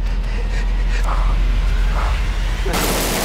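A man shouts desperately nearby.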